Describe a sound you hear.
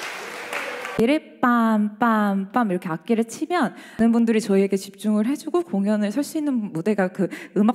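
A woman sings in a large echoing hall.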